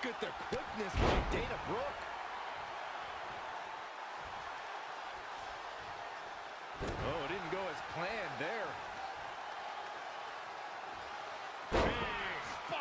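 Heavy thuds of bodies slam onto a wrestling ring mat.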